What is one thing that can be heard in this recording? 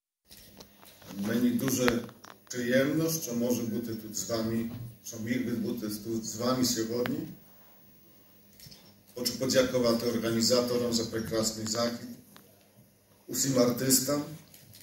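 A man speaks calmly through a microphone, echoing in a large hall.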